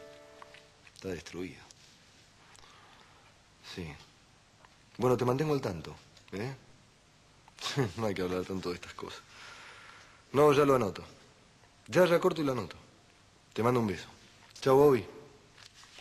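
A man speaks calmly into a phone, in short phrases with pauses.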